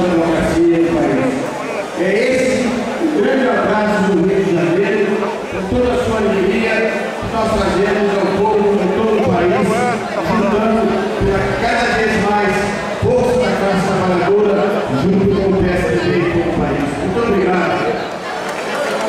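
An elderly man speaks with animation into a microphone over a loudspeaker system.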